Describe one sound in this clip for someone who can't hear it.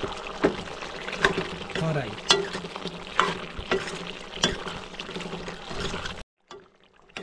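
A metal ladle scrapes and clinks against a wok.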